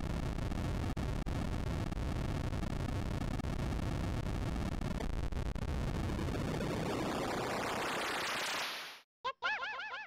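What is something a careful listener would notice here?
A deep rumbling roar swells and then cuts off.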